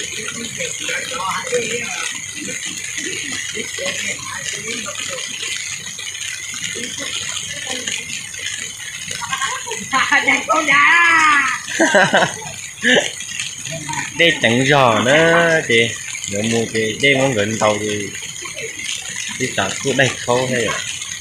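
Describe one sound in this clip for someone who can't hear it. A small waterfall rushes and splashes steadily.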